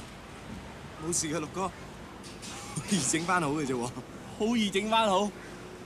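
A young man speaks with emotion close by.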